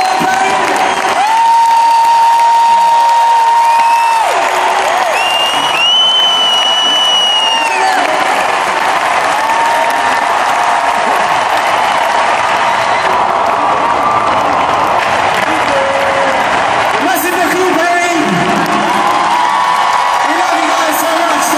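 A huge stadium crowd cheers and screams loudly.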